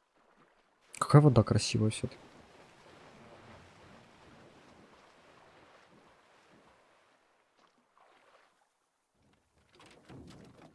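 An oar splashes and dips into calm water.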